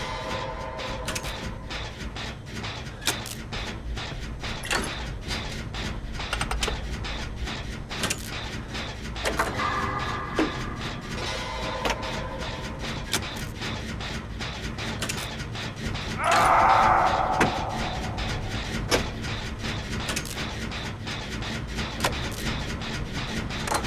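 Metal parts click and clank repeatedly as a machine is worked on.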